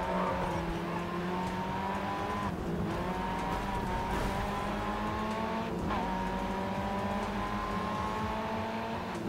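A car engine revs high and rises in pitch, dropping briefly at each gear change.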